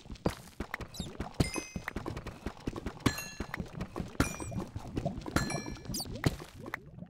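Small items pop as they drop.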